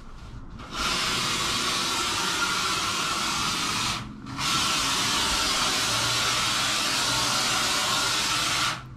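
A spray gun hisses loudly in bursts, with a short pause between them.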